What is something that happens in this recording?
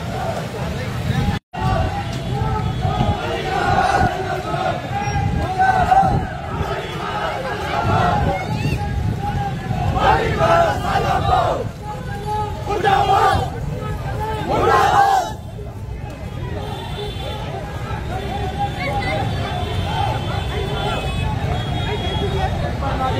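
A crowd of men talks and calls out nearby outdoors.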